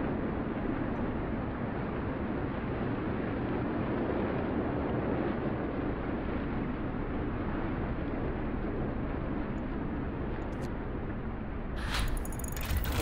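Wind howls steadily over snow.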